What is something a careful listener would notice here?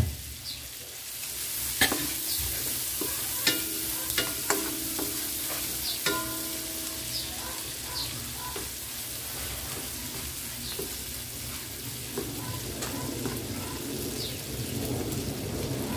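A wooden spatula scrapes and knocks against a pan.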